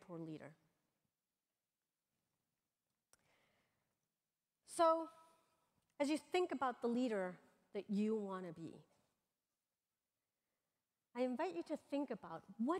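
A woman speaks into a microphone over loudspeakers in a large echoing hall, reading out names.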